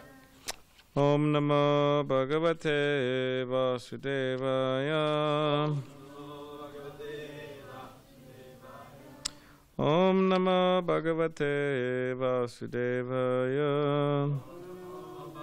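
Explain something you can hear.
A man chants melodically through a microphone in an echoing hall.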